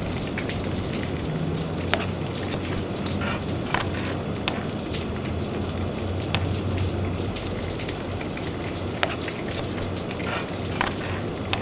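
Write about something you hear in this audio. A knife chops on a cutting board.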